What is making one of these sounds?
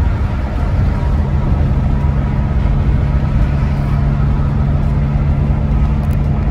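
Tyres roll over the highway with a steady rumble.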